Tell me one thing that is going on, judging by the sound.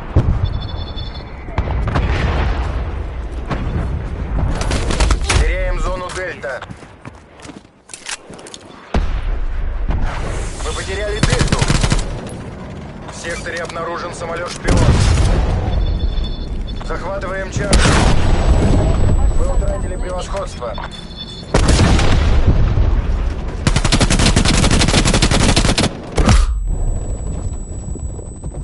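Rifle shots fire in rapid bursts.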